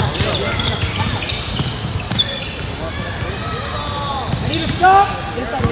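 Sneakers squeak sharply on a wooden court.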